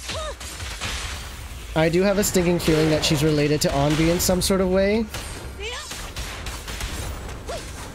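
Game combat effects crackle and whoosh with sharp hits.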